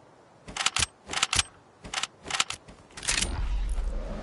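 A pickaxe strikes repeatedly with sharp, quick hits.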